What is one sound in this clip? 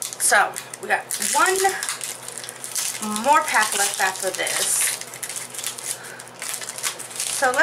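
A foil wrapper crinkles and rustles as it is torn open.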